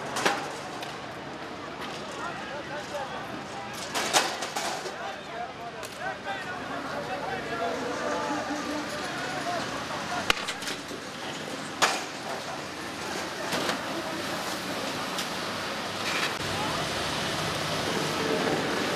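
A crowd of men shouts and clamours outdoors.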